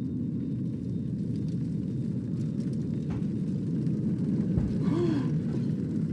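A fire crackles and roars nearby.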